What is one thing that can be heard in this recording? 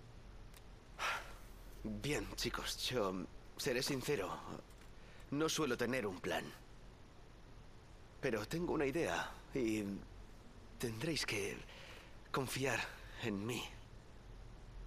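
A young man talks hesitantly and calmly, with pauses.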